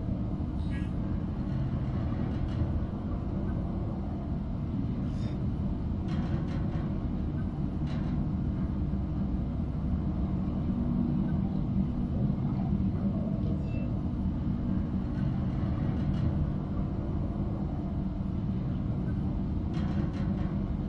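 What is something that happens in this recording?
Soft menu clicks sound now and then as items are selected.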